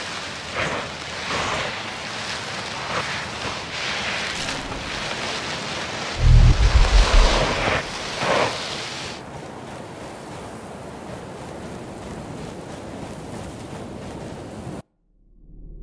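Footsteps crunch quickly over sand.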